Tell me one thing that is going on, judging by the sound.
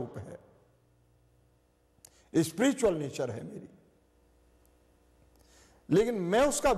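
An elderly man recites in a slow, sing-song voice close to a microphone, with pauses between phrases.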